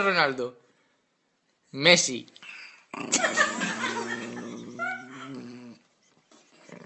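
A small dog growls and yowls close by in long, wavering, voice-like howls.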